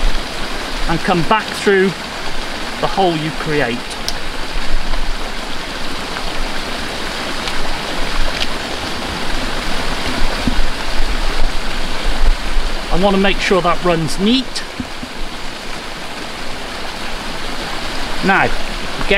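An elderly man speaks calmly and close up into a microphone.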